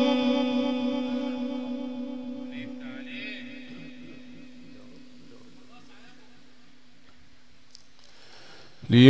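A young man sings a long held note through a loudspeaker, the note slowly fading away.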